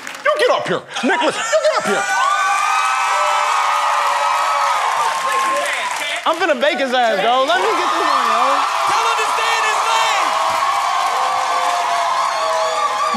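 A large crowd cheers and whoops loudly.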